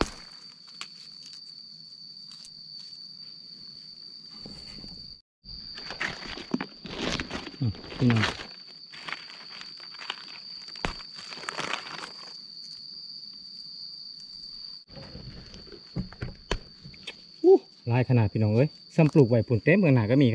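A plant is pulled from dry soil with a soft tearing sound.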